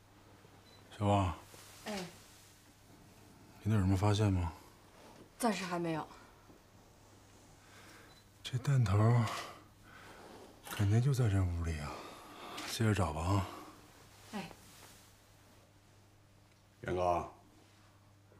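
A man speaks in short, low phrases nearby.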